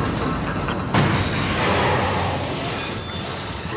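A heavy metal door bangs and hisses open.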